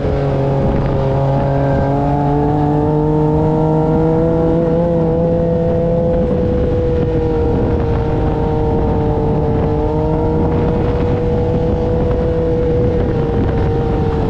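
An engine drones steadily up close.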